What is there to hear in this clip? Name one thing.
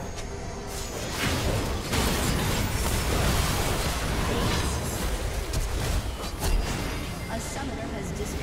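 Magic spells blast and crackle in a busy fight.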